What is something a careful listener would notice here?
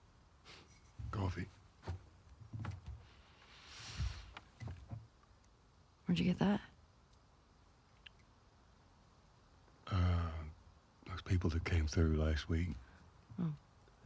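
A middle-aged man answers in a low, calm voice nearby.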